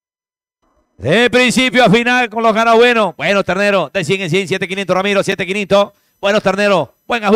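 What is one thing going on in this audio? A man speaks rapidly through a microphone.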